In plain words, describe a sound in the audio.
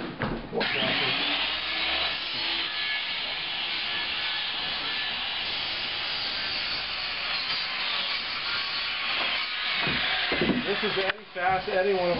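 A power saw cuts loudly with a steady high whine.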